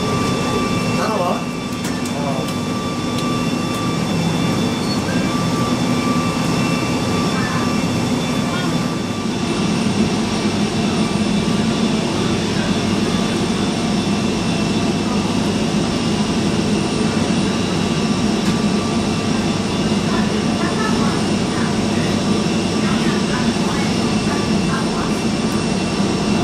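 An aircraft engine hums steadily, heard through a window.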